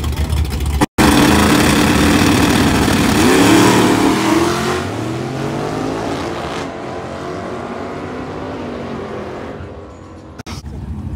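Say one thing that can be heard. A race car launches with a roaring engine and fades into the distance.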